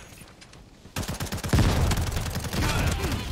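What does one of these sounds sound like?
A rifle fires rapid, loud bursts.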